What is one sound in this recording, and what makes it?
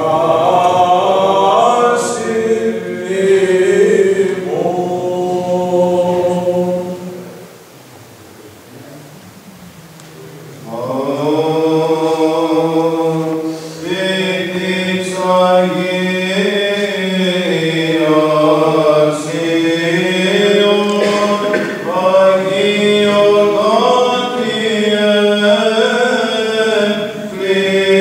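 Men chant together in a slow, resonant melody in an echoing hall.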